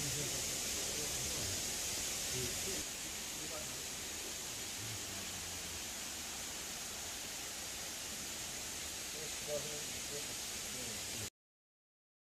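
Water trickles from a pipe into a pond.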